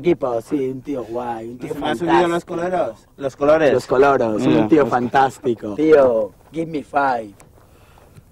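Two young men talk with animation close by.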